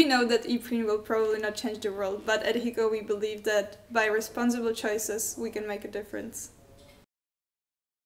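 A young woman speaks calmly and clearly, close to a microphone.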